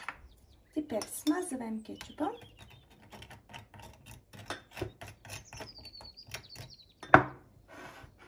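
A spoon clinks against a small bowl.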